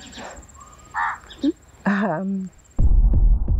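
A young woman speaks softly close by.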